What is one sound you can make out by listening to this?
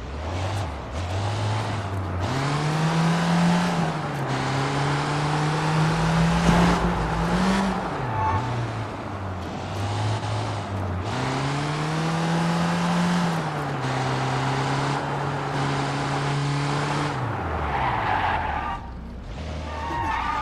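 A van engine revs up and down as it drives along.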